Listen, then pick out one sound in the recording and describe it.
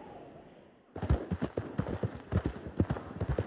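Horse hooves thud steadily on a dirt track.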